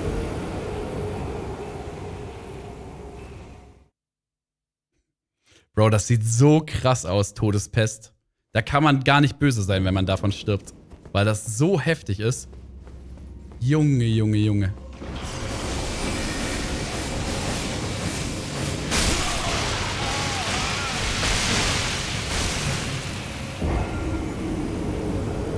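Game sound effects rumble and swirl.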